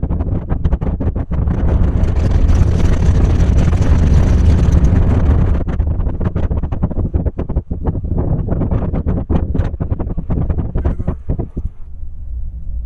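A train rumbles and rattles along the tracks.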